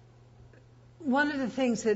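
An elderly woman speaks up calmly, close by.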